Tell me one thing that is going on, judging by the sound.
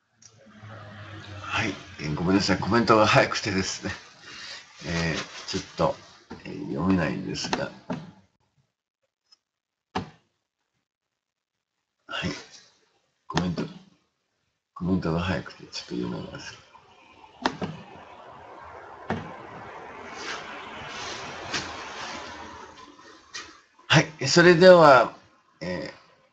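An elderly man talks calmly and close by, with pauses.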